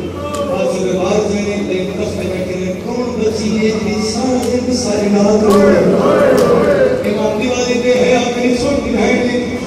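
A man speaks passionately and loudly through a microphone, his voice echoing over loudspeakers.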